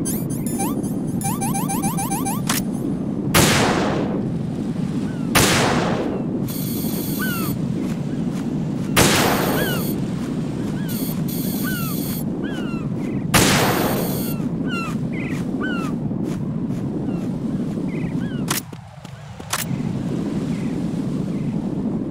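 Wind blows steadily.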